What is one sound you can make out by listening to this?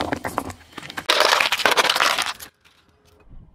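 A car tyre crushes a foil tray with a crinkling crunch.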